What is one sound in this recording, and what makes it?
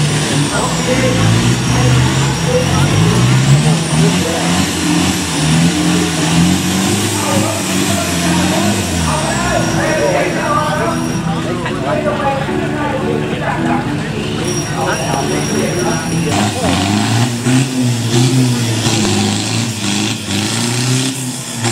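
A crowd of onlookers chatters and shouts nearby.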